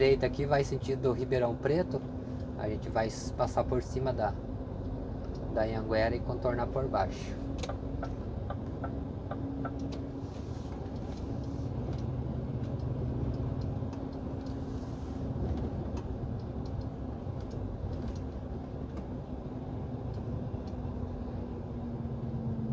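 A vehicle's engine hums steadily as it drives along a road.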